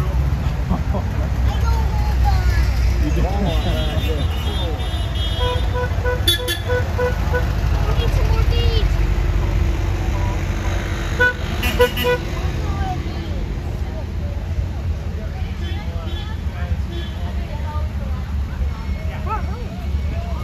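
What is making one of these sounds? Old van engines rumble and putter as vehicles drive slowly past outdoors.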